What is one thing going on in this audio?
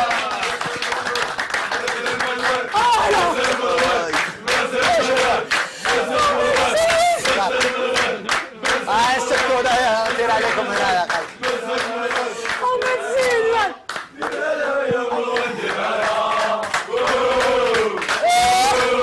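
A young man sings loudly through a microphone.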